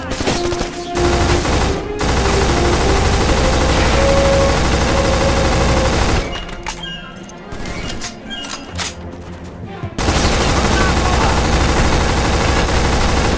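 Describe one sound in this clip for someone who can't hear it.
An automatic rifle fires in long, rapid bursts.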